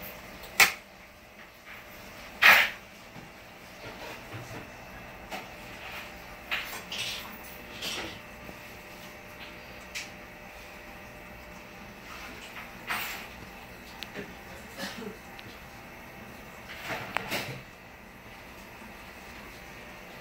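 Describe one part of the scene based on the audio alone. An aquarium filter hums softly and steadily.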